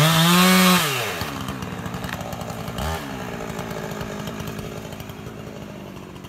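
A chainsaw idles steadily.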